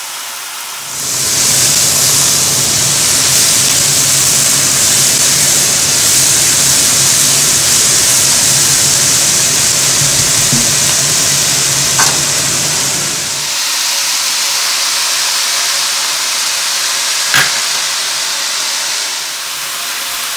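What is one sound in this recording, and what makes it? Food sizzles loudly in a hot pot.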